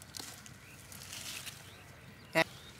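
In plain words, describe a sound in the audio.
Leaves rustle as hands pull through plants.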